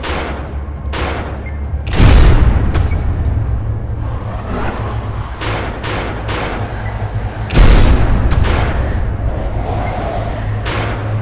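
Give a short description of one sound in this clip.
A heavy gun fires repeated blasts with deep booming rumbles.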